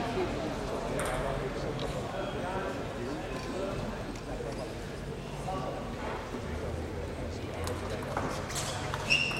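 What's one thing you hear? A table tennis ball clicks against paddles and the table.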